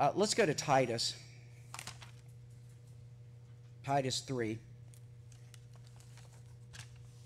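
Paper pages rustle as a man turns them.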